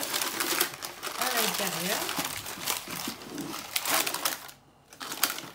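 Baking paper rustles and crinkles close by.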